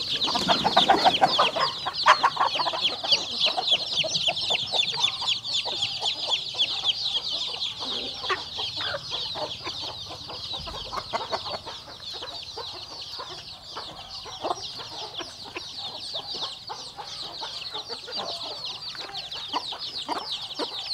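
Chicks peep rapidly and constantly nearby.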